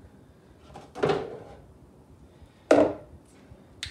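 A plastic container is set down on a wooden surface with a knock.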